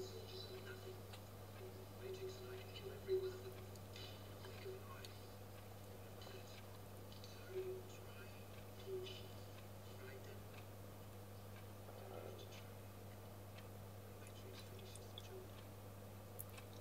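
A man speaks in a low, tense voice, heard through a television speaker.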